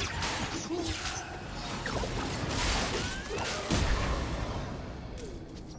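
A magic spell crackles and whooshes loudly.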